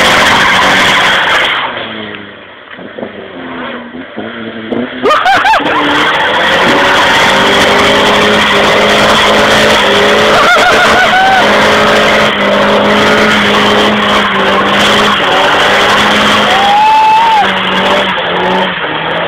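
Tyres screech as they spin on the road.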